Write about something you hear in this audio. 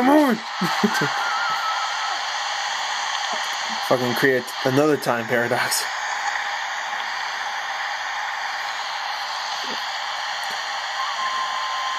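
A waterfall rushes steadily through a small speaker.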